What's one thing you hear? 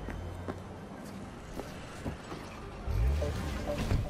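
A car door opens and thuds shut.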